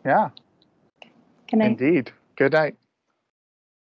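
A man speaks cheerfully over an online call.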